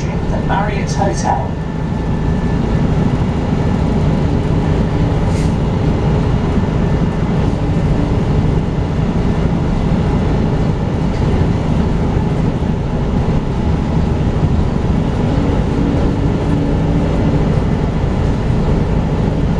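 A bus engine rumbles steadily while driving, heard from inside.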